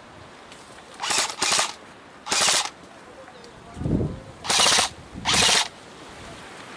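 A gun fires several short bursts nearby.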